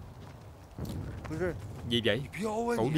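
A young man speaks tensely close by.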